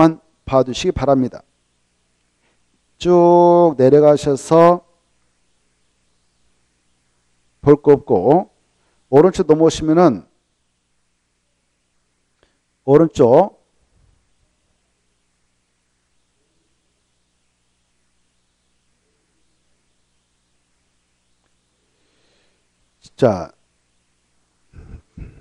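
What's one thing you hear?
A middle-aged man speaks calmly into a close microphone, in short bursts with long pauses.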